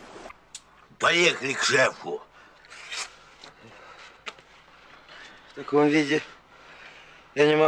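An older man speaks in a gruff voice.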